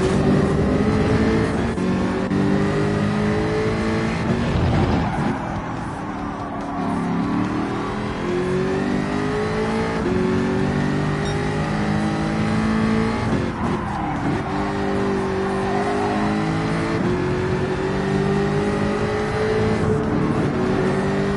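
A racing car engine roars, climbing in pitch and dropping sharply with each gear change.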